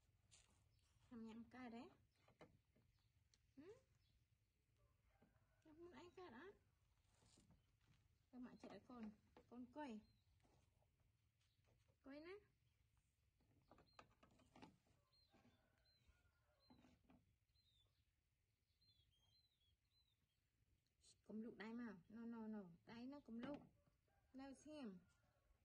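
A woman talks softly and warmly close by, in short bursts.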